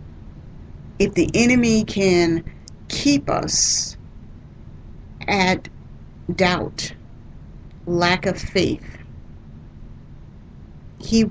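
A woman speaks calmly into a microphone, in short phrases with pauses.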